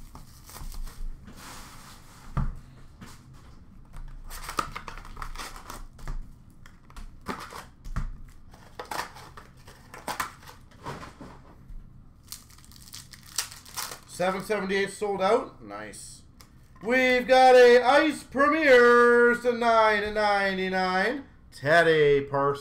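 Plastic-wrapped card packs rustle and clack as they are handled.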